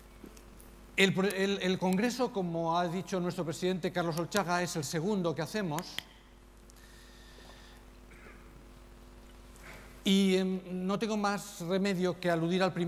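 An older man speaks calmly through a microphone in a large echoing hall.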